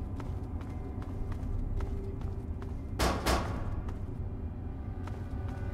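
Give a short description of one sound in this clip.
Footsteps crunch steadily on loose rubble.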